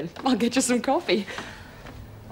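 A young woman laughs loudly nearby.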